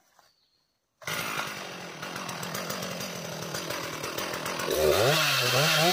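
A chainsaw engine runs loudly and revs up.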